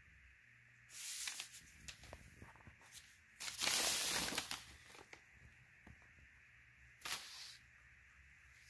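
Paper pages rustle and crinkle close by.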